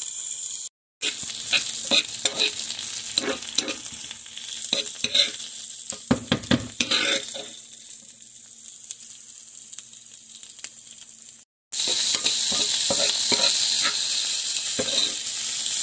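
A spatula scrapes and clicks against a pan.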